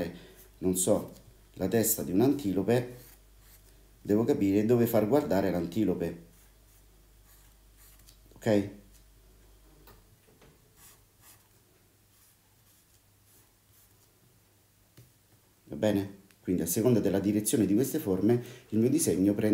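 A felt-tip marker squeaks and scratches on paper.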